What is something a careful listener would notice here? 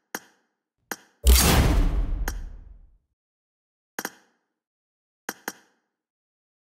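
Short interface clicks tick several times.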